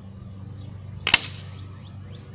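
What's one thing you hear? A pellet hits a paper target with a sharp smack.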